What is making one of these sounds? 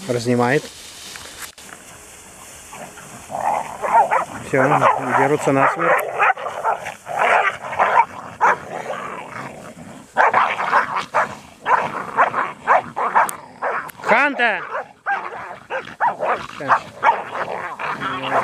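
Dogs rustle through tall grass.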